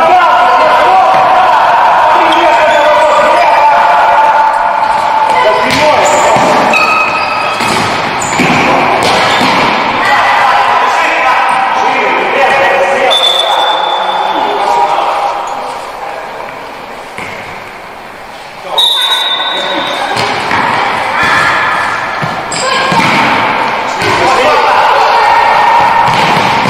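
Players' shoes squeak on a hard indoor floor.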